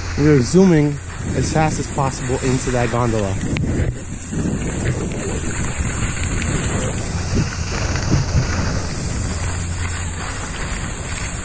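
A snowboard scrapes and hisses across packed snow.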